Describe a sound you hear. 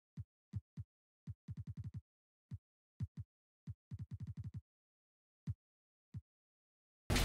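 Short menu clicks tick in quick bursts.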